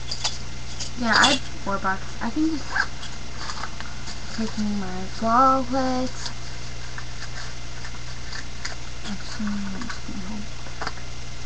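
A young person speaks softly close to a microphone.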